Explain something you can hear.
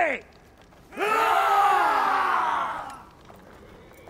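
A man shouts a battle cry.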